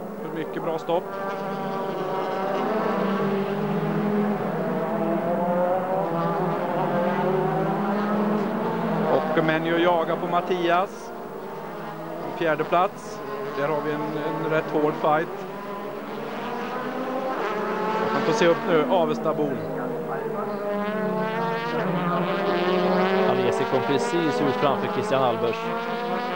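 Racing car engines roar loudly, rising and falling as the cars shift gears.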